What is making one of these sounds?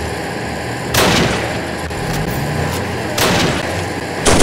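A tank gun fires with a loud boom.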